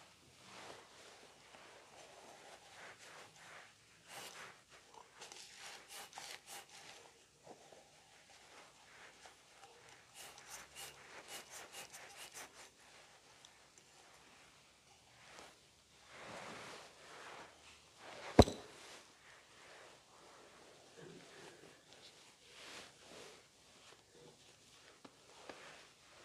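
A man speaks quietly and steadily into a microphone in an echoing room.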